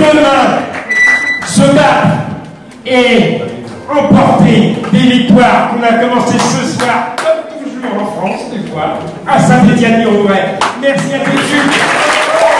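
An elderly man speaks into a microphone through loudspeakers in a large echoing hall.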